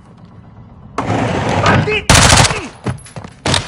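A rifle fires a rapid burst of loud shots indoors.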